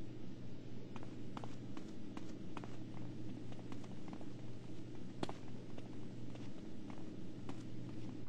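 Footsteps tap along a hard floor at a quick pace.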